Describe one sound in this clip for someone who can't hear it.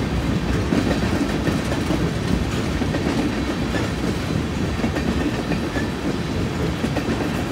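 Wheels clatter on the rails.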